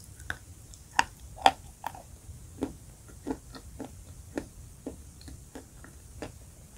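A woman chews a crunchy food close to a microphone, with sharp crackles and squishy bites.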